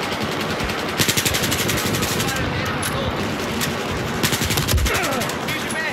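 An assault rifle fires in bursts.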